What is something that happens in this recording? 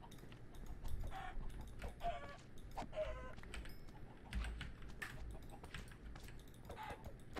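A chicken clucks now and then.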